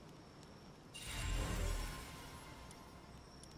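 A bright magical chime rings out as an egg finishes hatching.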